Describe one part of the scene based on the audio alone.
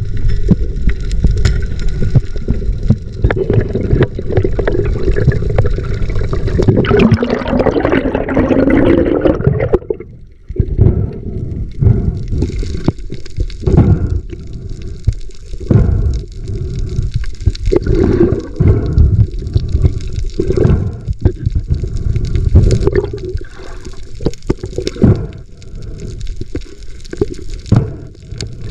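Water rushes and thumps in a low, muffled way underwater.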